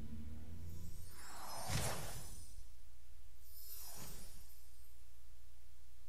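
A magical whoosh sweeps past twice.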